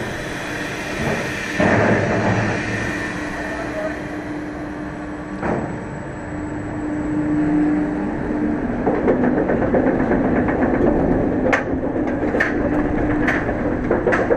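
A roller coaster train rumbles and clatters along its track.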